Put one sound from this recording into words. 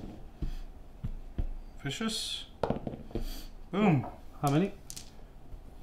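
Dice clatter onto a table.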